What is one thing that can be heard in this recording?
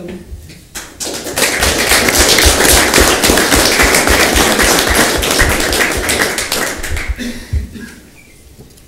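A crowd applauds loudly and then dies down.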